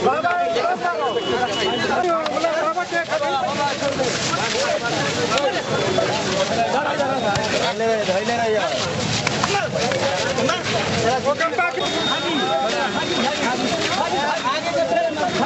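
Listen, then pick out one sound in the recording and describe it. A crowd of men shouts and yells excitedly close by.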